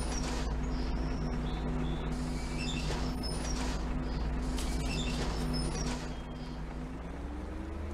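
A bus engine idles with a low, steady rumble.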